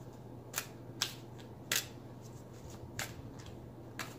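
Playing cards shuffle and snap softly.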